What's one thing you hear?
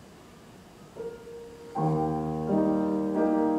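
A grand piano plays.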